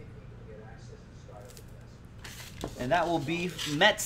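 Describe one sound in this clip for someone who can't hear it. Plastic wrapping crinkles.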